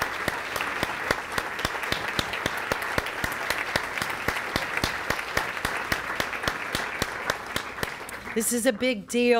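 A large crowd applauds and cheers.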